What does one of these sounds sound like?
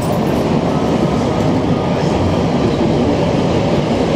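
A subway train slows as it pulls into a station.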